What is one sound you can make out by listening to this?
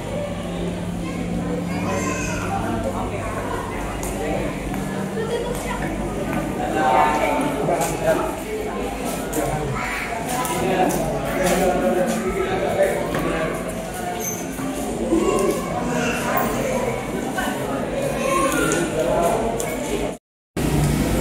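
A crowd of visitors chatters in an echoing indoor hall.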